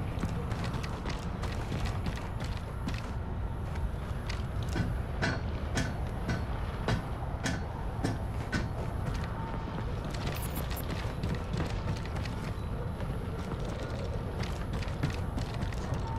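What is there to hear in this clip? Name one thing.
Heavy footsteps thud on the ground.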